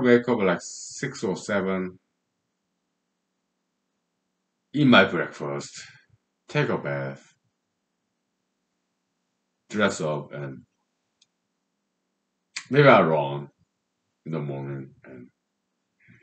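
A man speaks calmly in short bursts with pauses, close to the microphone.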